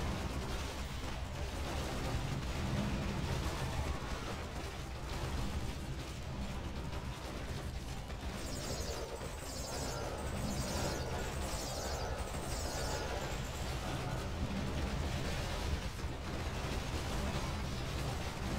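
Swords clash and spells boom in a game battle.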